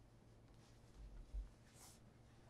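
A shoe is set down on a wooden table with a soft thud.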